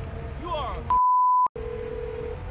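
A phone gives a short, sharp beep.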